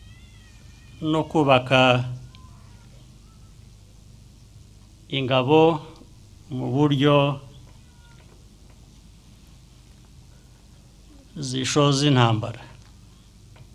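A middle-aged man speaks slowly and calmly through a microphone, with long pauses.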